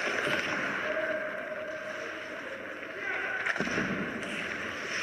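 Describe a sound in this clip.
Ice hockey skate blades scrape and carve across the ice.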